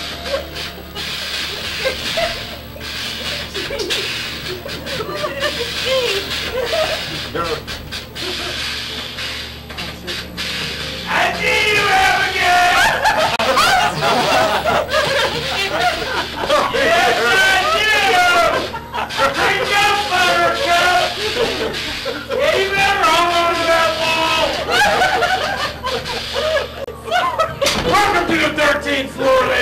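Several adults talk at once close by.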